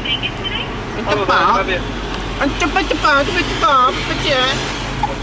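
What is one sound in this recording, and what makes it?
A young man speaks calmly and clearly, close by.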